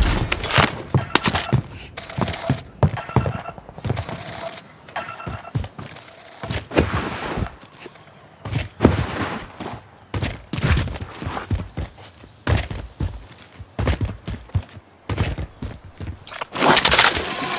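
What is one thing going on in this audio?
Footsteps thud quickly on hard ground and floorboards.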